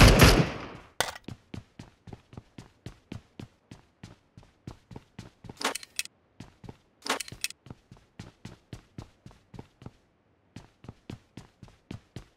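Footsteps patter quickly and evenly on a hard floor.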